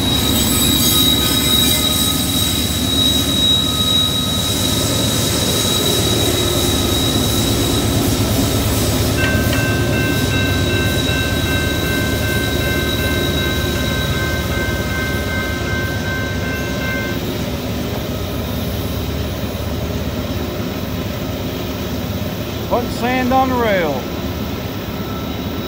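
A diesel locomotive rumbles loudly as it passes close by.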